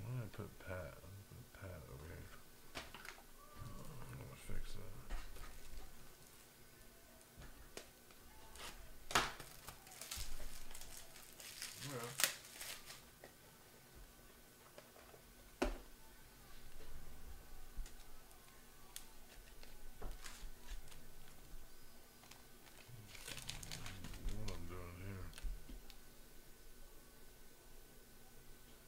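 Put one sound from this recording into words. Plastic card sleeves rustle and click as they are handled.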